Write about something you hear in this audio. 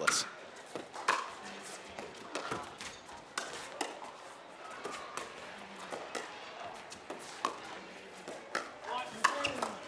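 Paddles pop against a plastic ball in a quick back-and-forth rally.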